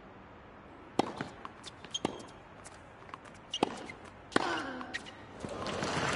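A tennis ball is struck back and forth with rackets.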